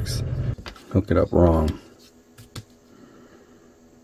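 A metal clamp snaps onto a battery terminal with a click.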